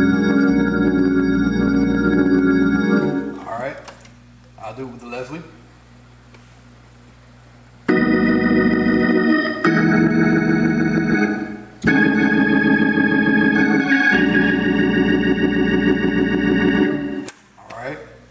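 An organ plays sustained chords.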